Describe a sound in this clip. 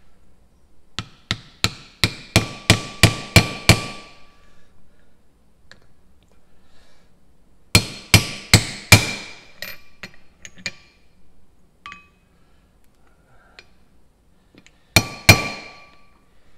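A hammer strikes metal in quick, ringing blows, in three bursts.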